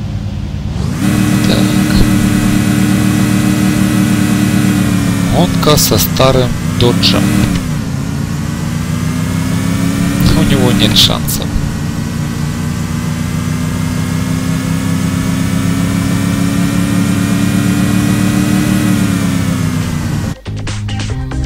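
A racing car engine roars steadily, with its pitch dropping briefly at each gear shift.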